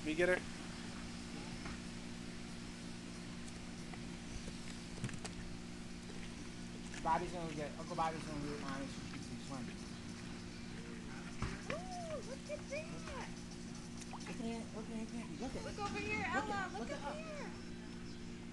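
A small child squeals and babbles.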